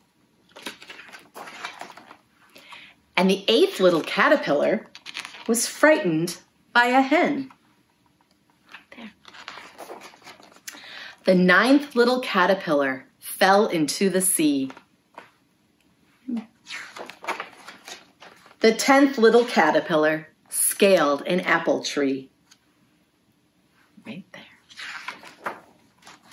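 A woman reads aloud expressively, close to a microphone.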